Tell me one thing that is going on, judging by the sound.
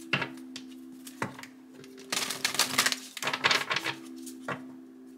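Cards tap lightly against a hard surface.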